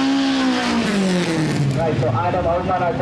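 A drag car's engine fades away at speed down the track.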